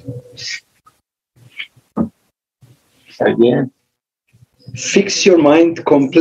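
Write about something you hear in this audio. An elderly man speaks slowly and calmly over an online call.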